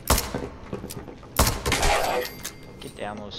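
Gunshots bang loudly in quick bursts.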